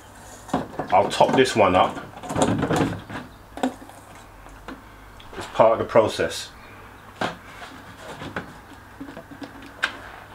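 Liquid glugs and splashes as it pours from a plastic jug.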